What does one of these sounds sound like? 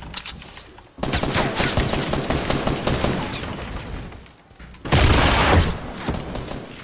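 Gunshots crack rapidly in a video game.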